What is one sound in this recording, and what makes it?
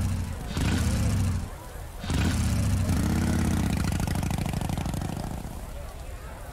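A motorcycle engine revs loudly in bursts and roars.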